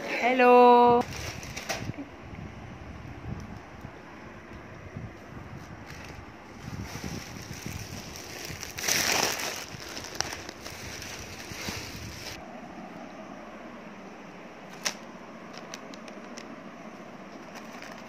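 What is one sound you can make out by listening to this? Plastic snack bags rustle and crinkle.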